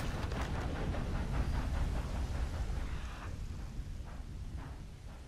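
Footsteps crunch on grass and dirt.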